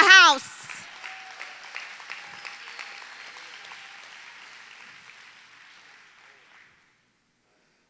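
An audience applauds in a large hall and the applause fades away.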